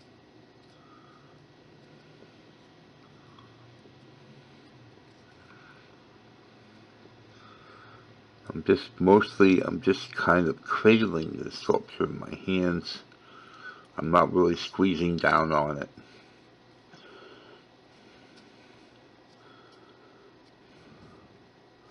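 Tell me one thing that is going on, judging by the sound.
A wooden tool scrapes softly against soft clay.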